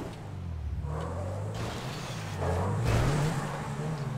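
Leaves and bushes rustle and scrape against a car.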